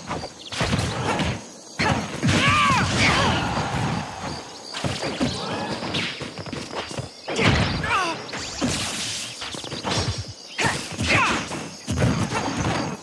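Cartoonish fighting hits and energy blasts crack and whoosh in quick bursts.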